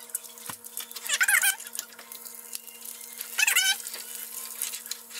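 A fork scrapes and turns food in a frying pan.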